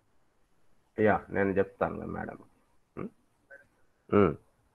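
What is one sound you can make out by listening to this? A man speaks calmly in short phrases, heard through a microphone on an online call.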